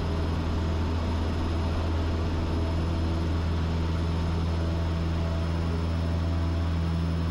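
A single-engine propeller plane's engine roars at full throttle on the takeoff roll, heard from inside the cockpit.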